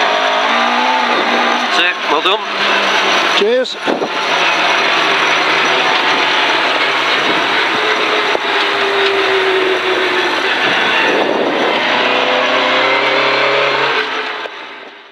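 A rally car engine roars hard and its pitch rises and drops with each gear change.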